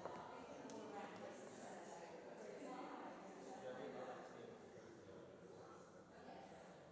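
Men and women chat quietly in a large echoing hall.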